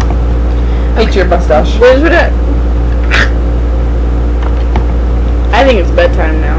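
A young woman speaks casually close to a webcam microphone.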